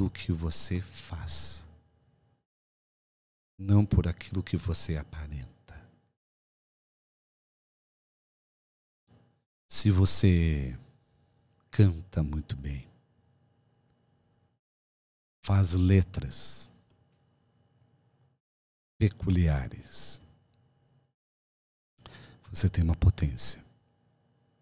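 A middle-aged man speaks calmly and close into a microphone, in short phrases with pauses.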